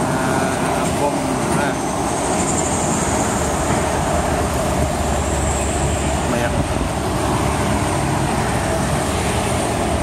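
Motorcycles drive past.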